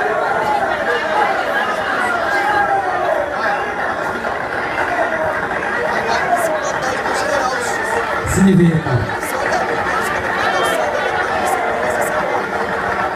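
A large crowd chatters and talks loudly all around.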